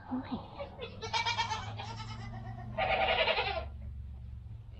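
A goat bleats loudly close by.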